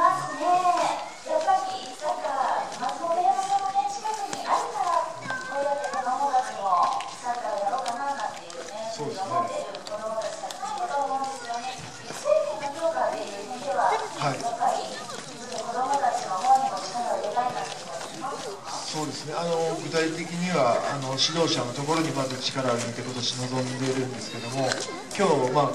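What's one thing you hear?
A young woman speaks brightly through a microphone and loudspeaker outdoors.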